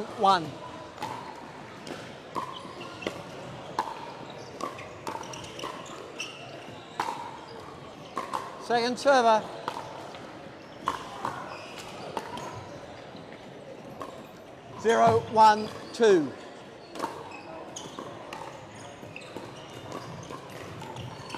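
Paddles strike a plastic ball back and forth with sharp pops in an echoing hall.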